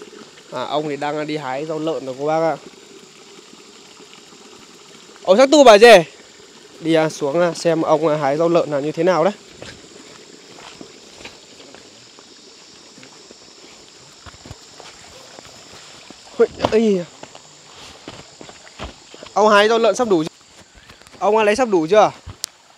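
A young man talks with animation, close by, outdoors.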